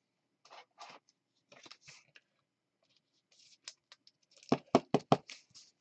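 Trading cards rustle and tap as they are handled.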